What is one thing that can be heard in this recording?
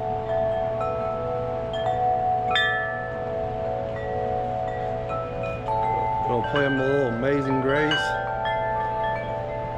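Metal wind chimes ring with clear, lingering tones.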